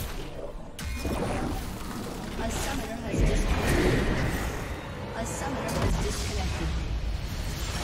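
Magic spells crackle and boom in a video game battle.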